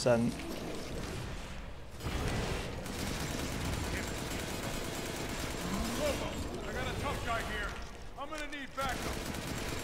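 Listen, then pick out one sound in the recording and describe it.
A gun fires repeatedly.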